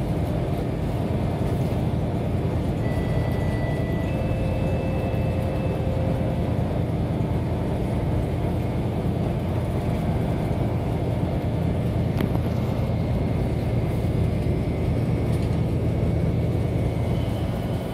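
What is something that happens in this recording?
A bus engine rumbles low and steady as the bus drives along.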